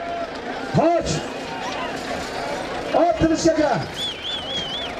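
Men shout loudly close by.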